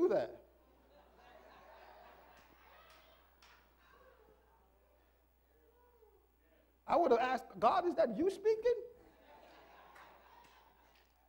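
A man preaches through a microphone in an echoing hall, his voice rising to loud, emphatic bursts.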